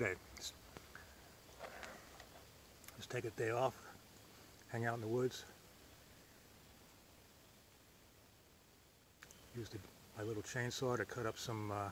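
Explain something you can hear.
An older man speaks calmly, close to the microphone.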